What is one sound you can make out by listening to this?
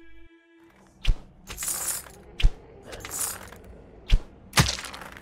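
A bowstring snaps sharply as arrows are loosed, one after another.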